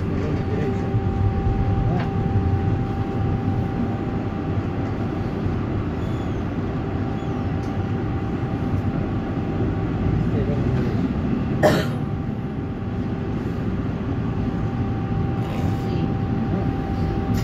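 Tram wheels rumble on rails.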